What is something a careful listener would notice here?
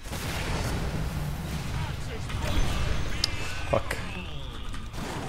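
Game spell effects crackle and chime.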